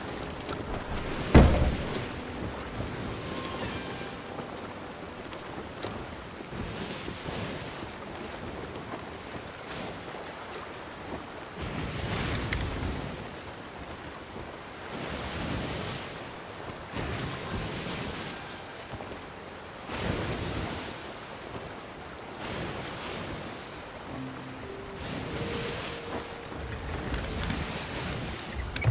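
Wind blows steadily through the sails.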